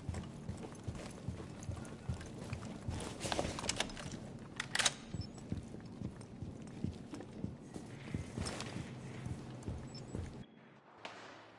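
Footsteps thud quickly across a hard floor.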